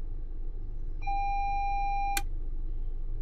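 A warning tone beeps steadily for about a second and cuts off with a click.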